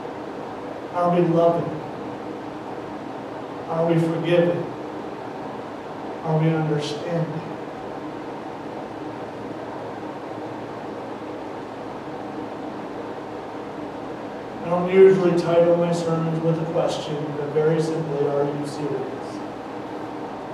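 A man speaks calmly through a headset microphone, in short phrases with long pauses.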